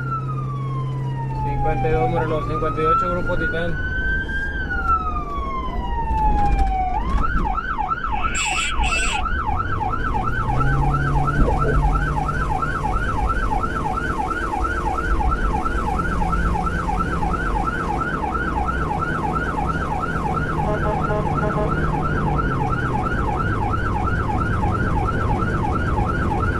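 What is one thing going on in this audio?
An emergency vehicle drives along a paved road.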